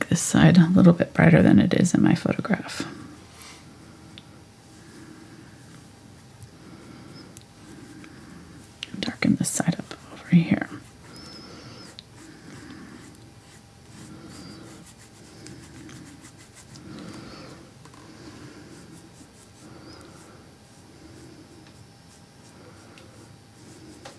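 A paintbrush dabs and brushes softly on canvas.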